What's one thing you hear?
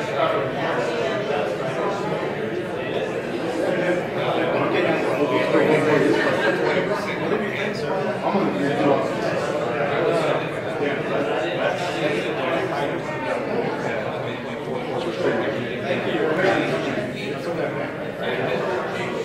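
A crowd of adults chatters and murmurs throughout a large room.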